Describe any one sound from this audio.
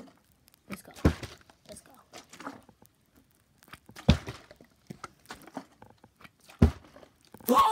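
A plastic bottle thumps down onto carpet.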